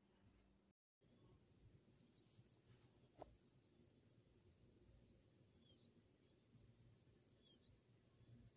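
An outdoor air conditioner unit runs with a low, steady hum.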